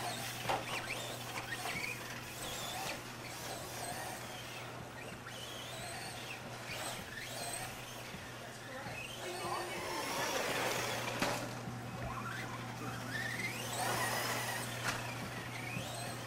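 A small electric motor whines, rising and falling in pitch as a toy car races over dirt.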